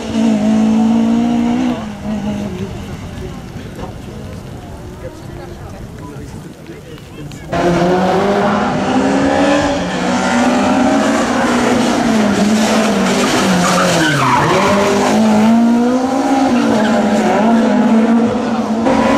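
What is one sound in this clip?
A rally car engine roars loudly, revving up and down as the car speeds past.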